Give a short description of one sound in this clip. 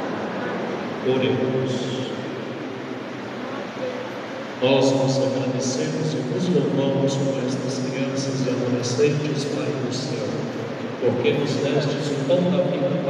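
A congregation of many young voices sings together in a large echoing hall.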